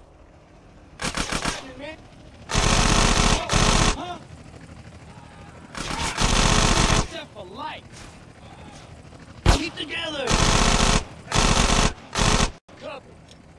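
Bursts of rapid automatic gunfire ring out close by.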